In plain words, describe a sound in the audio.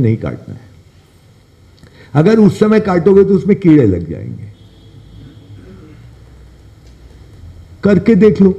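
An older man speaks calmly and in pauses into a close microphone.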